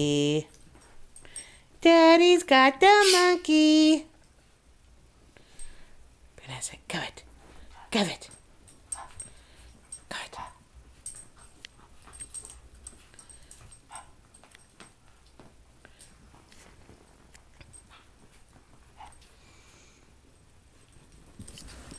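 Puppies scuffle and tussle on a carpet.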